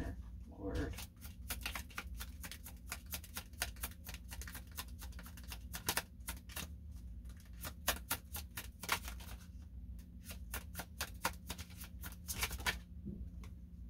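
Playing cards riffle and flick rapidly as they are shuffled by hand.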